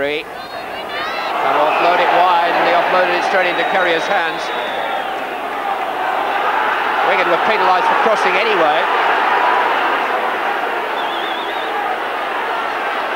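A large crowd roars and cheers outdoors.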